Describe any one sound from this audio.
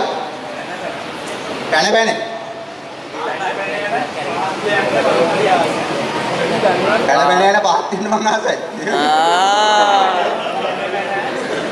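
A young man laughs into a microphone.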